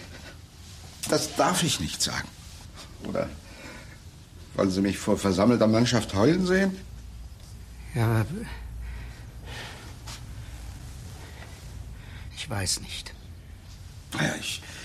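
An elderly man speaks in a low, tense voice nearby.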